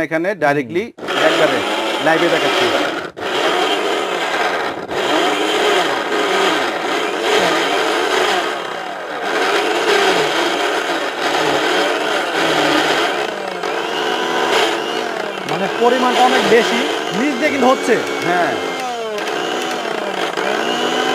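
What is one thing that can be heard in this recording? A blender motor whirs loudly, grinding food.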